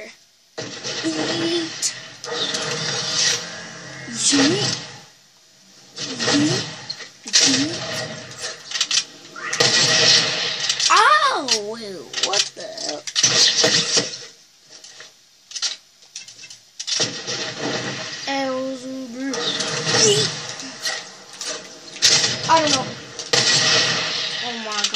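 Video game sound effects play in bursts through a television's speakers.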